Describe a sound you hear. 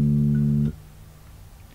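An electric bass guitar plays a low sustained note, then stops.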